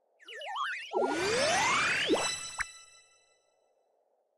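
A magical shimmer swells and rings out with chiming tones.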